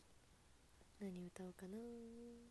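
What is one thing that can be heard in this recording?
A young woman sings a few notes close to a microphone.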